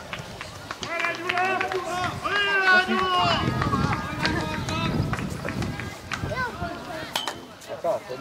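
Children shout and call out to each other across an open field.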